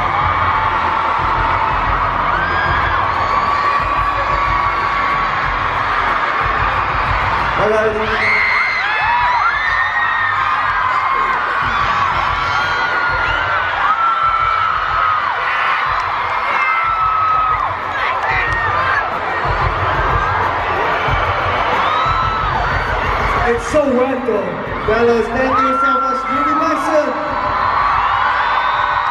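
Young women in the crowd shriek in high, rising squeals.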